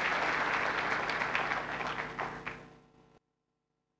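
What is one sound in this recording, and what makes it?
An audience applauds in a large hall and the applause fades out.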